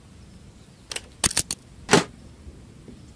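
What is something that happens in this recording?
A wooden chest lid clicks and opens.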